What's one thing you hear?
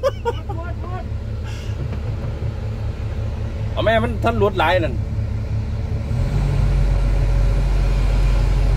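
An excavator engine rumbles steadily and grows louder.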